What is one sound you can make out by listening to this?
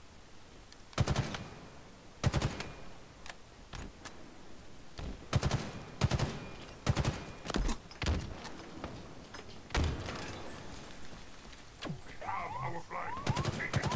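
Rifle shots crack in short bursts.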